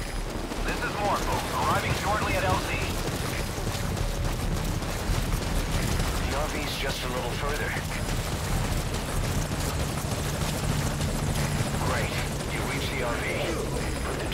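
Footsteps run over rocky ground.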